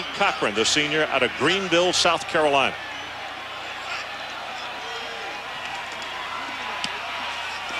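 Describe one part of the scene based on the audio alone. A large crowd murmurs in an open stadium.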